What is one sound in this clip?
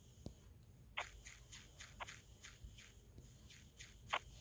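Light footsteps patter quickly.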